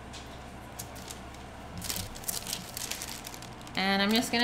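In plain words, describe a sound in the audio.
A plastic sheet crinkles under hands.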